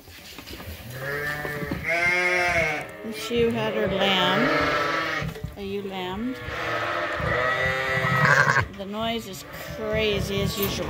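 A ewe bleats in a deep, low voice close by.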